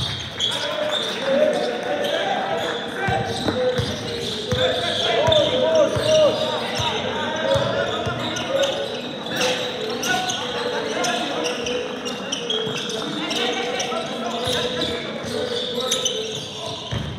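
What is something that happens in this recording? A basketball bounces on a wooden floor with sharp thuds.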